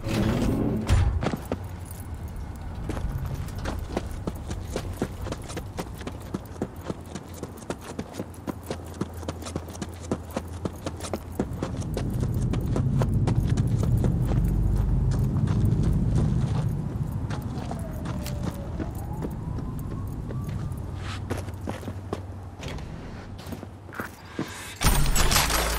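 Footsteps patter steadily on hard ground.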